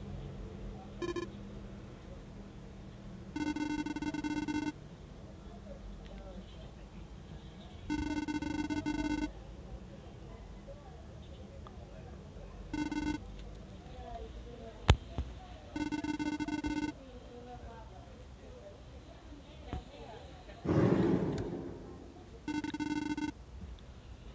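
Electronic beeps chirp in short rapid bursts.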